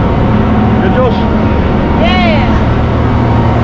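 A young boy speaks close by over the engine noise.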